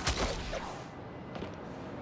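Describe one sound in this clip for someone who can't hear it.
Wind rushes past during a fast fall through the air.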